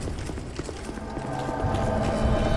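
A deep ominous tone swells up.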